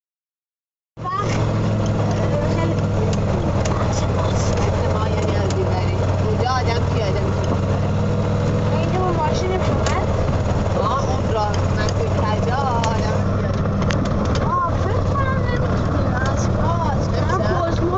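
A golf cart's motor hums steadily while driving.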